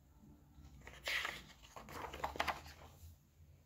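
Paper rustles as a book page is turned.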